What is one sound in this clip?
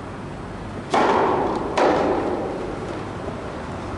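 A tennis ball bounces sharply on a hard court in a large echoing hall.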